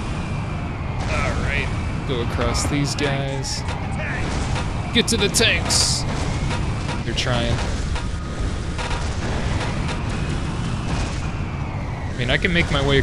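Energy weapons fire in short zapping bursts.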